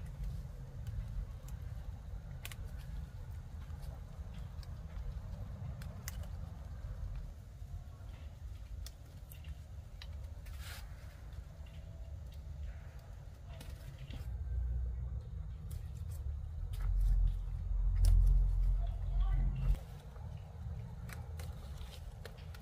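Tomato stems snap as ripe tomatoes are picked by hand.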